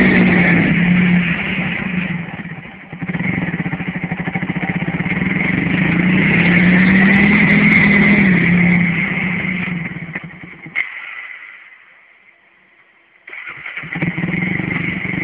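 Tyres churn through mud.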